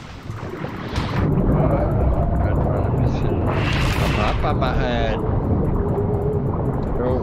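A middle-aged man talks into a close microphone in a relaxed way.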